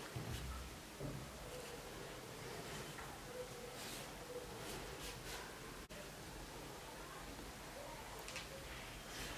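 A pen scratches lightly across paper.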